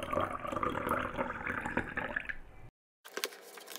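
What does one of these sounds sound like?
Water pours and splashes into a glass jar.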